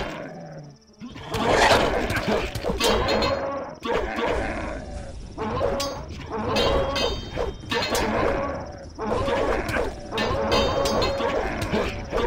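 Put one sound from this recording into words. Swords swing and clash with heavy metallic blows.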